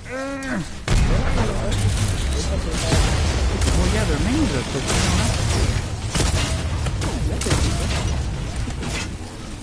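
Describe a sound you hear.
Energy weapons fire and blasts crackle in a loud battle.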